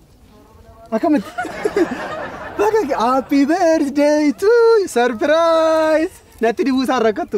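A young woman laughs loudly nearby.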